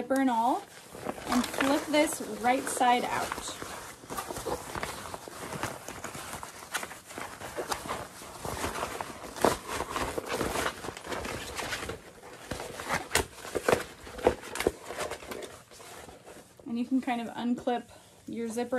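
Nylon fabric rustles and crinkles as it is handled.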